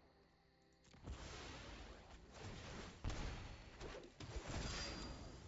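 A magical whooshing effect sweeps and bursts.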